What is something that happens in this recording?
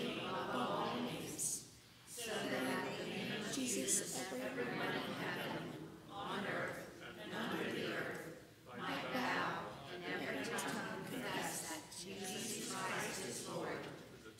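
A young woman reads aloud calmly into a microphone in a reverberant hall.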